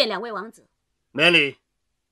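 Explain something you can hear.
A man speaks with emphasis.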